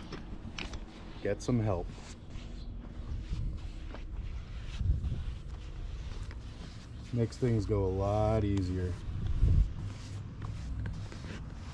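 A paintbrush swishes across wood.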